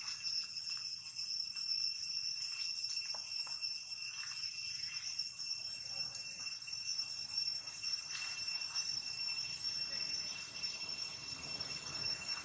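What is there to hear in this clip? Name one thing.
A monkey's feet patter and rustle softly over dry leaves.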